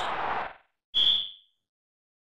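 A referee blows a short, shrill whistle.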